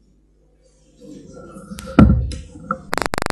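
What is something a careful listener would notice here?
A chair creaks as a man gets up.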